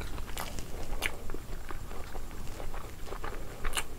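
Fingers squish and mix soft rice.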